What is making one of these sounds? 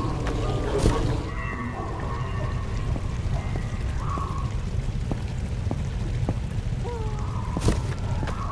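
Footsteps tap on wooden planks.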